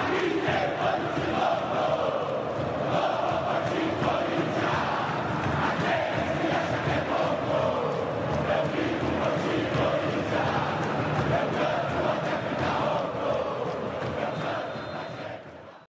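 A large crowd of fans sings a chant loudly in a stadium.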